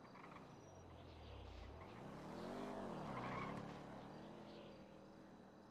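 A car engine hums as a car drives past.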